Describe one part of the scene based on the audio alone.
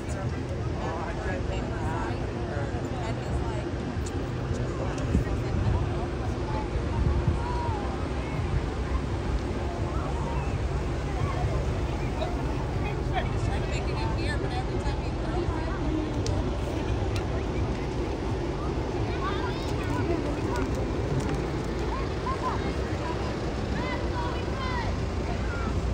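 A crowd of people chatters outdoors in the distance.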